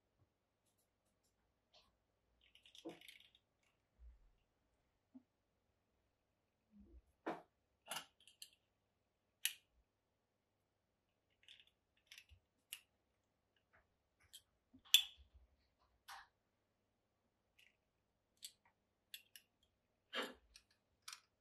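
Binder clips click and snap shut on leather.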